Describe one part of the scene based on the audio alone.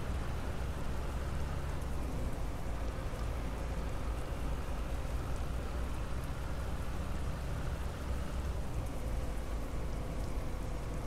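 A bus engine rumbles steadily as it drives along.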